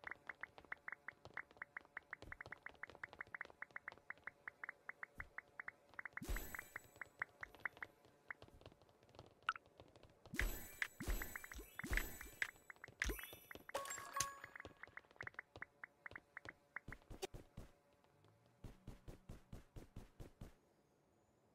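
Quick, light footsteps tap steadily on a hard floor.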